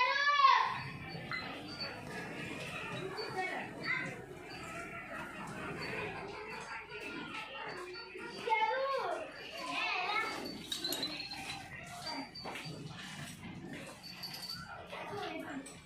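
Small bells on a buffalo's neck chain jingle softly close by.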